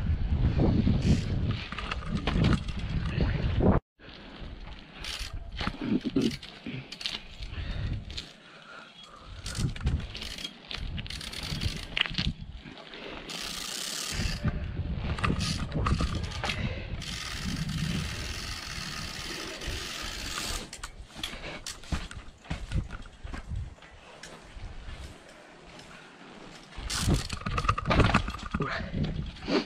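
Bicycle tyres roll over rough pavement.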